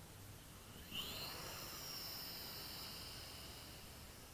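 A small drone's motors whir and buzz, rising in pitch as it lifts off.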